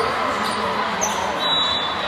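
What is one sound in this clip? A volleyball thumps off a player's hands.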